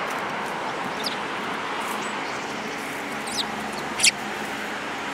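A small bird chirps sharply a few times.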